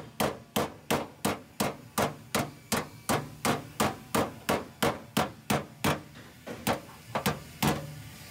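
A hammer strikes a metal dolly in a quick, steady rhythm, each blow ringing sharply.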